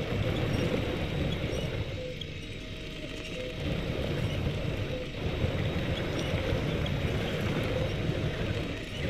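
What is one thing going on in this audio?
A vehicle engine rumbles steadily while driving through mud.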